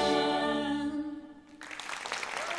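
A woman sings a long held note through a microphone.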